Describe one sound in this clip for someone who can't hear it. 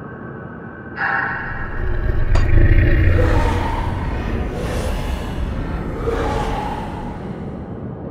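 A magic spell bursts with a deep rumble and whoosh.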